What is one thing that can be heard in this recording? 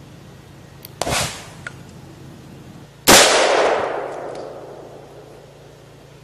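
Loud explosions bang and rumble away.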